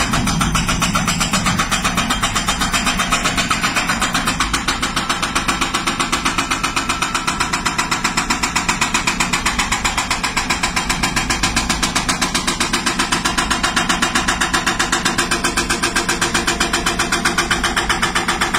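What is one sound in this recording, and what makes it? A hydraulic rock breaker hammers rapidly and steadily against stone.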